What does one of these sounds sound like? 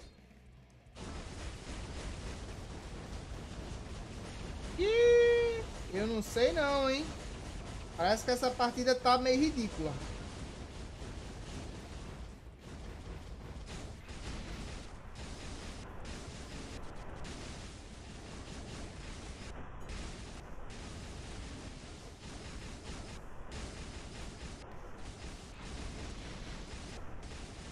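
Game battle effects whoosh and crash steadily.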